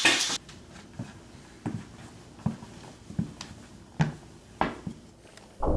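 Sneakers step on a hard wooden floor.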